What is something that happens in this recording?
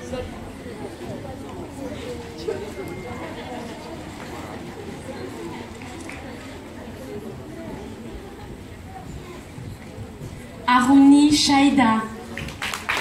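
A woman speaks through a loudspeaker in a large echoing hall.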